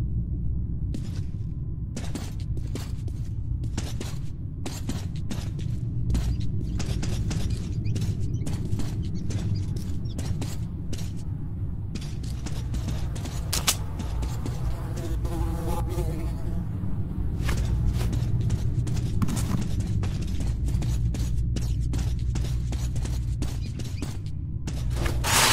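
Footsteps thud on a hard floor at a steady walking pace.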